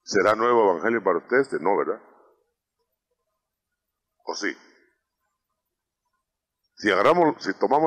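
A man speaks into a microphone in short phrases with pauses.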